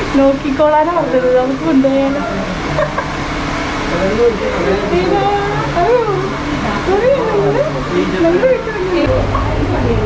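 A woman speaks softly to a dog close by.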